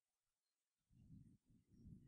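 A fiery blast bursts and crackles.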